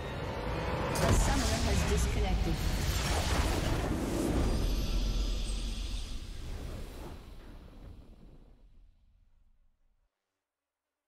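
A triumphant game fanfare swells and then slowly fades out.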